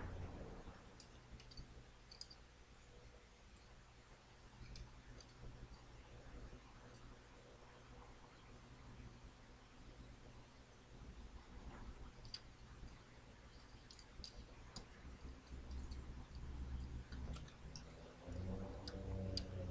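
A circuit board clicks and rattles as it is handled.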